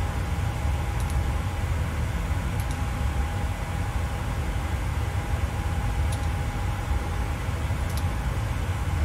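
Cockpit switches click now and then.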